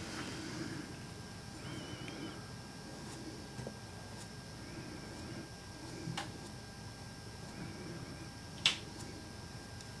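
A paintbrush strokes softly across a canvas.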